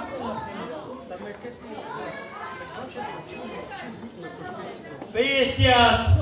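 A crowd of people murmurs and chatters in the background.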